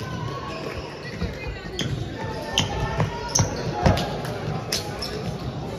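Sneakers squeak on the hard court.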